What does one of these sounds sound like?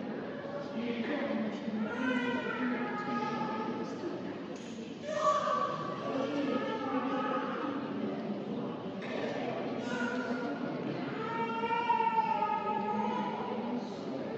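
A woman speaks clearly close by, with animation.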